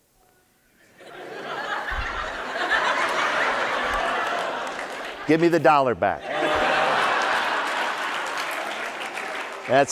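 An audience in a large hall cheers and applauds.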